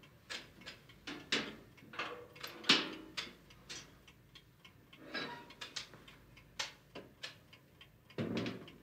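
Metal clicks and clanks as a box's latches are handled.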